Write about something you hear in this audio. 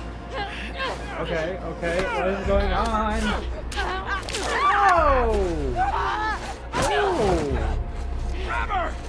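Two women grunt and strain as they struggle.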